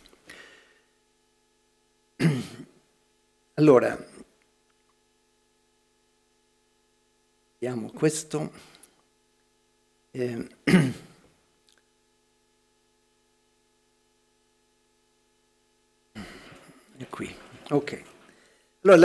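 An elderly man speaks slowly into a microphone, with long pauses.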